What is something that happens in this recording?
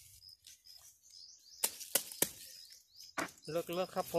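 A digging tool thuds into the ground.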